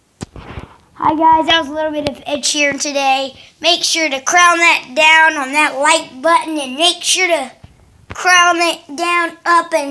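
A young child sings loudly, very close to the microphone.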